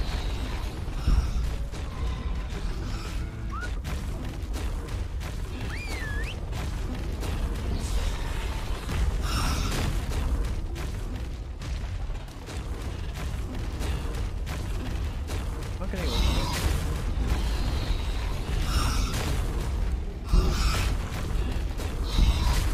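Wind rushes steadily past a flying creature.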